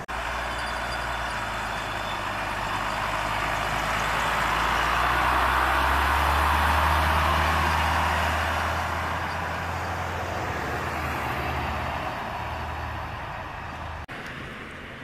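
A heavy truck engine rumbles up close and drives past, then fades away.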